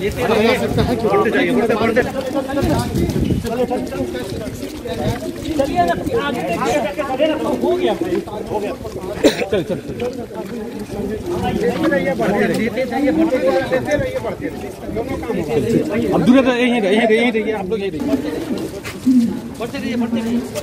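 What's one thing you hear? A crowd of men murmur and talk nearby outdoors.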